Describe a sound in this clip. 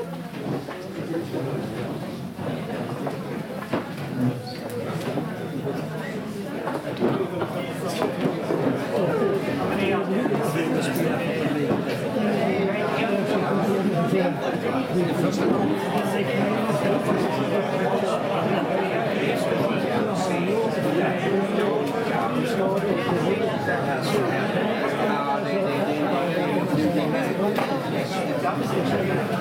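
A group of adult men and women chat with animation nearby.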